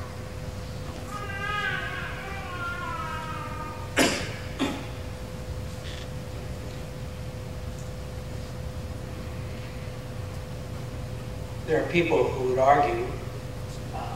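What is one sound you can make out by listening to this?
A man vocalizes in short bursts nearby.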